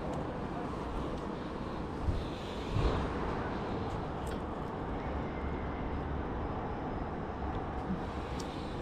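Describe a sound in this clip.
Wind blows steadily outdoors, buffeting loudly.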